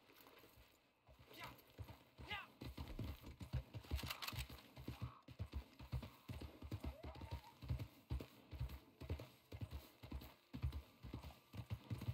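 Horse hooves thud rhythmically on grassy ground at a gallop.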